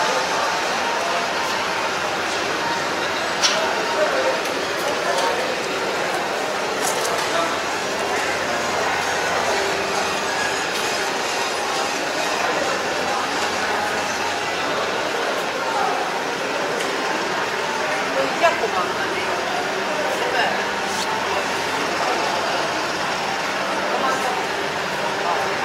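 A crowd of people murmurs and chatters in a large echoing hall.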